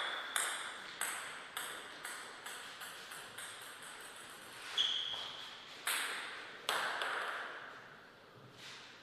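A table tennis ball bounces on a hard floor.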